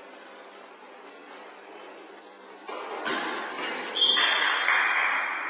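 A referee's whistle blows short blasts in an echoing hall.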